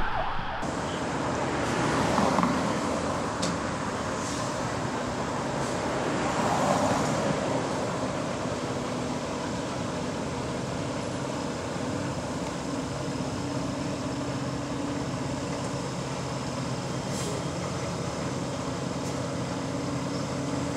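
A fire engine's diesel engine rumbles steadily as it pulls slowly out.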